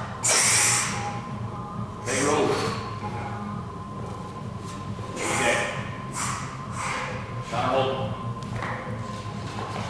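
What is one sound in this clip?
A man grunts with effort while lifting something heavy.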